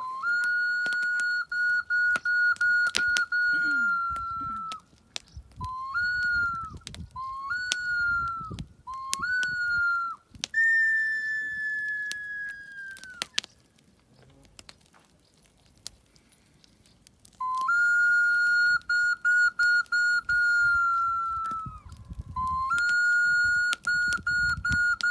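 A small flute plays long, high notes with quick breaks, close by.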